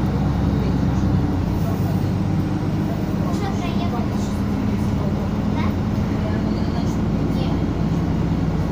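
A bus engine hums steadily from inside the moving bus.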